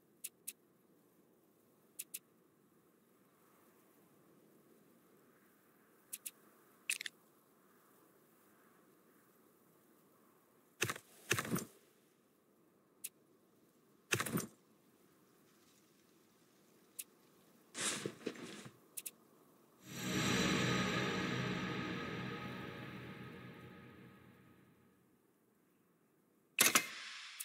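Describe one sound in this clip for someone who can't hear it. Game interface clicks and chimes sound in short bursts.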